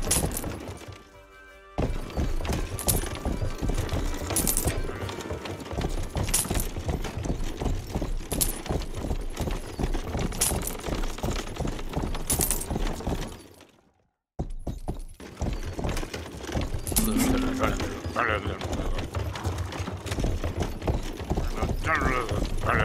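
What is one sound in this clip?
A horse-drawn plough scrapes and rumbles through soil.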